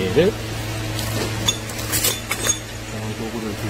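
Metal tools clink and rattle in a toolbox.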